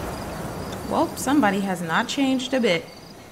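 A young woman speaks softly and wearily.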